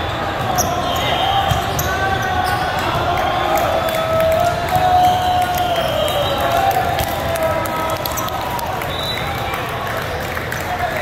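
Teenage boys shout and cheer.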